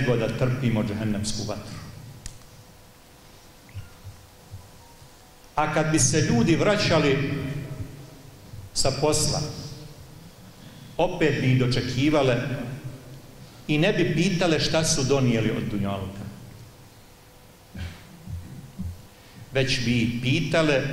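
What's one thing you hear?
An elderly man speaks with emphasis into a microphone, in bursts with pauses.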